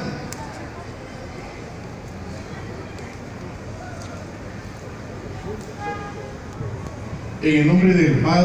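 A crowd murmurs in the open air.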